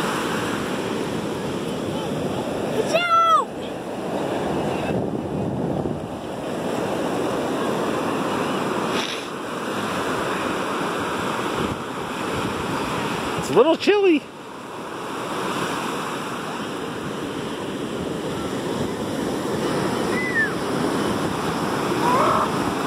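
Waves crash and wash up onto the shore.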